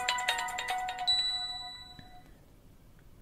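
A phone plays a short chiming startup tune.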